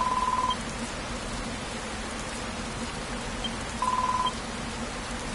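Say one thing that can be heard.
A quick electronic beeping chatters in short bursts.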